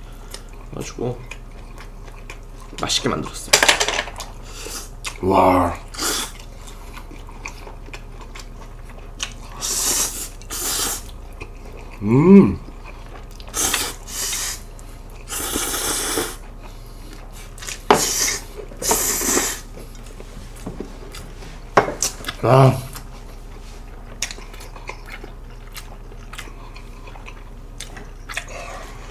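Two young men chew food noisily.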